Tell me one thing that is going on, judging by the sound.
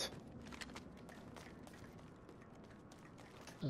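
Footsteps tap lightly on a hard floor.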